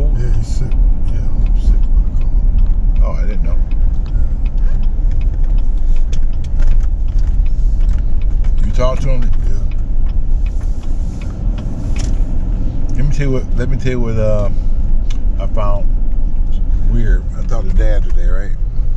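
A car engine hums steadily with road rumble as the car drives.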